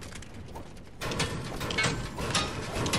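A pickaxe strikes metal with repeated clanks.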